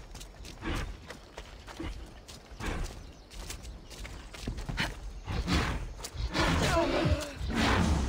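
A spear swishes through the air in quick swings.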